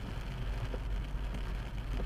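A windscreen wiper thumps across the glass.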